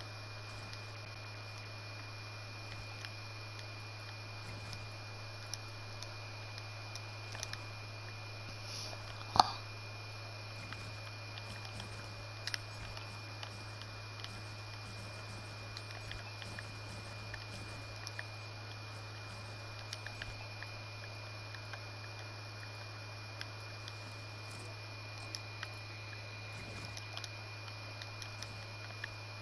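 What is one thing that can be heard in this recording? Building pieces in a video game snap into place with soft clicks.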